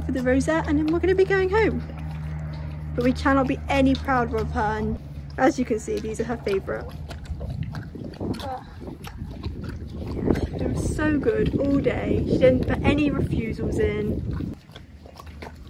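A horse tears and chews grass close by.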